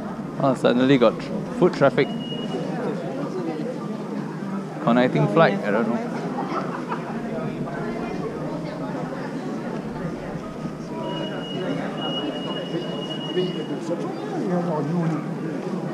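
Suitcase wheels roll across a carpeted floor.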